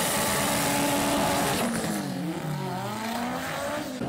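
Tyres screech as they spin on the track.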